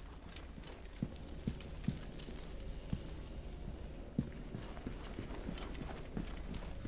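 Footsteps thud slowly on stone steps.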